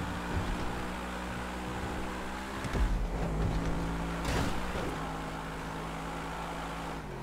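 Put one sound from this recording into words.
A sports car engine roars at full throttle.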